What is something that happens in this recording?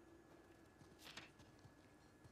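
A paper page flips over.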